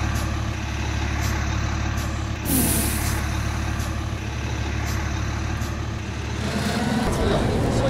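A diesel city bus pulls away.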